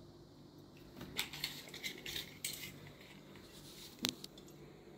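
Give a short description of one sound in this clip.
A metal tape measure rattles and clicks.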